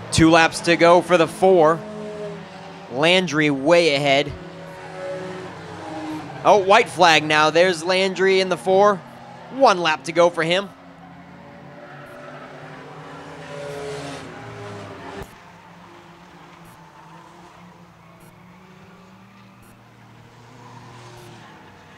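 Race car engines roar around a track.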